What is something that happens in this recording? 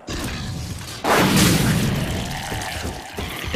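A rocket explodes with a loud, booming blast.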